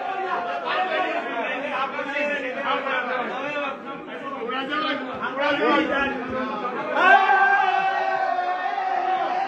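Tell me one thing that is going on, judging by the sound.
A group of young men talk loudly and excitedly close by.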